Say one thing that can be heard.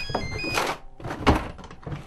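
A drawer knocks and rattles.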